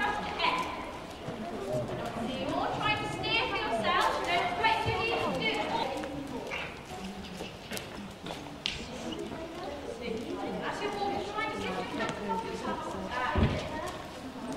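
A woman talks nearby in a large echoing hall.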